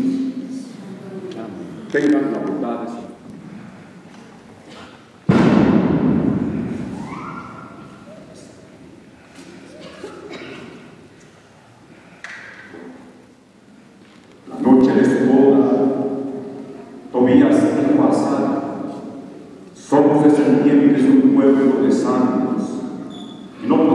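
A man sings slowly through a microphone, echoing through a large hall.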